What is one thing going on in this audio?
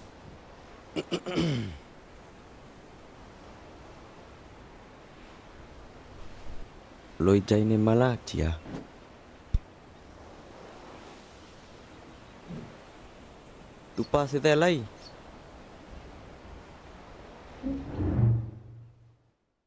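An elderly man speaks in short, warm phrases.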